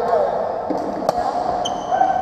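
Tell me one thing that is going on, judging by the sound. A badminton racket strikes a shuttlecock.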